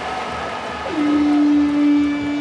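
A buzzer sounds loudly.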